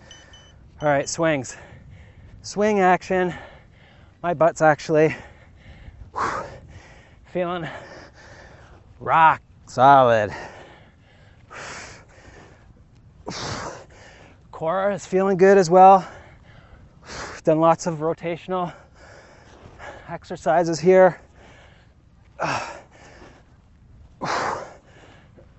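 A man speaks energetically into a close microphone, in short bursts.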